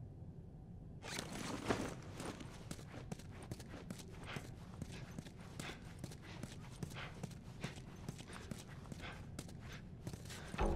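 Footsteps scuff and tap steadily across a hard floor.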